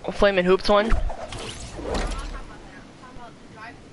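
A glider snaps open with a short whoosh.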